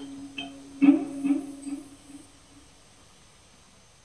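An electric guitar plays plucked notes that ring out and fade.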